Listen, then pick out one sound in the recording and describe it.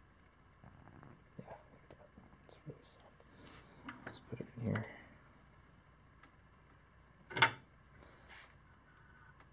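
Metal tools clink and click against each other.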